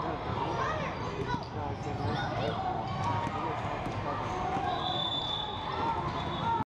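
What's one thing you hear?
A crowd of spectators cheers and calls out in a large echoing gym.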